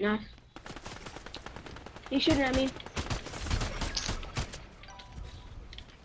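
Footsteps patter quickly over ground.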